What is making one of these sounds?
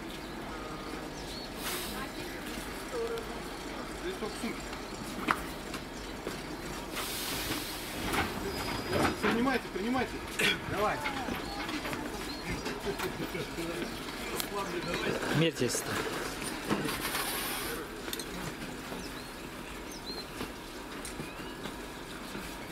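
Suitcase wheels rattle on a platform.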